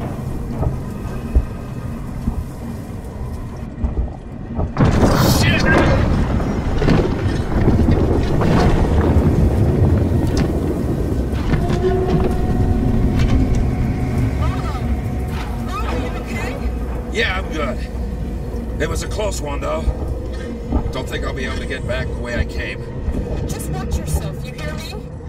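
An engine hums and rumbles steadily, growing louder after a few seconds.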